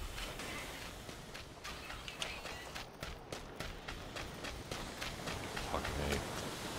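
Footsteps run quickly over dirt and gravel.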